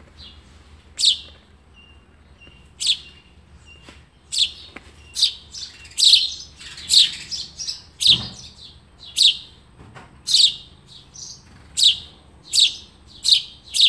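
A bird chirps sharply and repeatedly from close by.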